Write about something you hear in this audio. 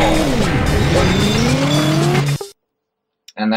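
A car engine roars as the car skids and bounces.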